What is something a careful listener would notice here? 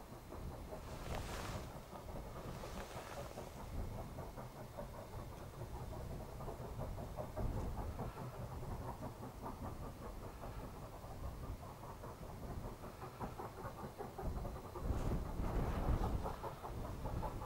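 A steam locomotive's exhaust roars and hisses in bursts.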